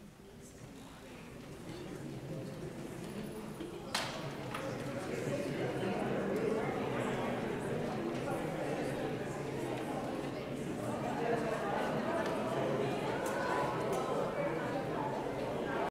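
A crowd of men and women chatters in a large echoing hall, growing louder.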